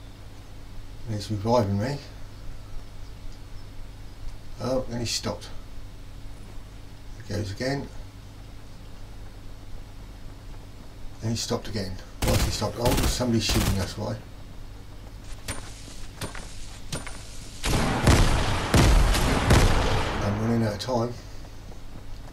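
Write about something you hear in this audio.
A man speaks in short bursts close to a microphone.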